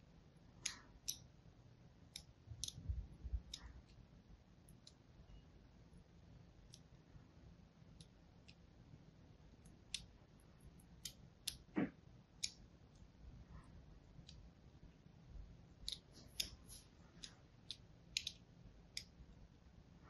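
A blade scrapes and scores soft soap with crisp little scratches.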